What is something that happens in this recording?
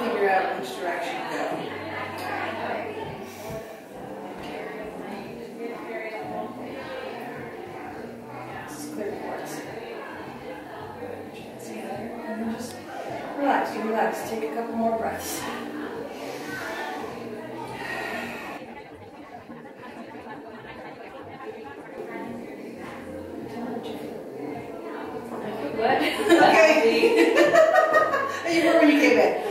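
A young woman speaks calmly and softly nearby.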